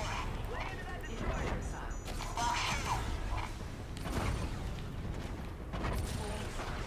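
A warning alarm beeps.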